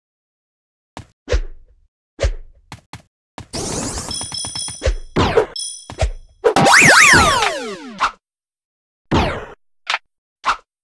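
Short, cartoonish game sound effects pop, chime and whoosh.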